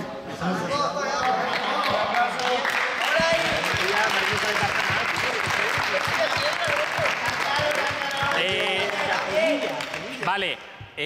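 A crowd claps hands in a rhythm.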